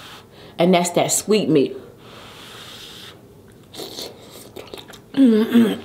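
A young woman slurps and chews food wetly close to a microphone.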